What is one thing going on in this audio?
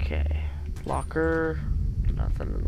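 A wooden cabinet door creaks open.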